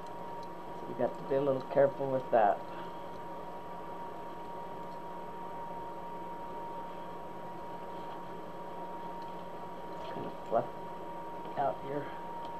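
An elderly woman speaks briefly and calmly.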